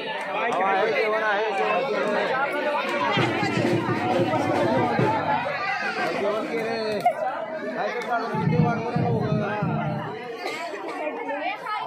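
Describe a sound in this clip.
A large crowd of men and women chatters loudly close by.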